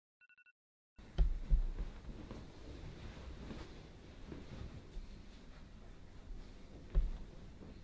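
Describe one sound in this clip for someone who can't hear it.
A blanket rustles as it is thrown aside and folded.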